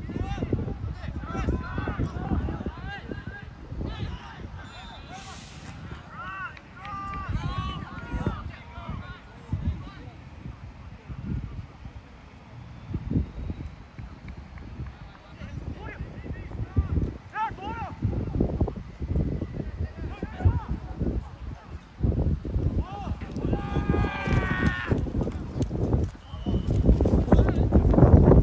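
Young men shout to each other from across an open playing field.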